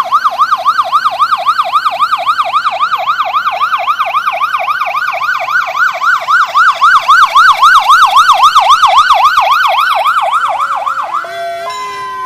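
A police siren yelps rapidly up and down close by.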